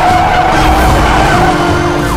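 Tyres skid and screech on the road.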